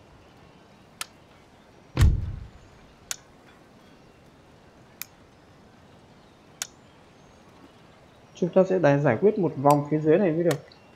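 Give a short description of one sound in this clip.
Game menu buttons click sharply now and then.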